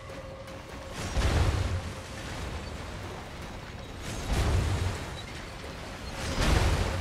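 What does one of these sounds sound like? Flames burst and roar in loud, rushing surges.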